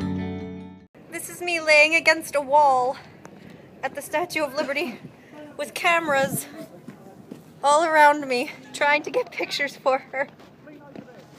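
A young woman talks close by, cheerfully and with animation.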